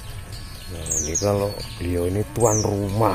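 A man talks nearby with animation.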